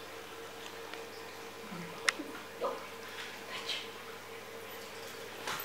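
A puppy's paws patter and click on a hard floor.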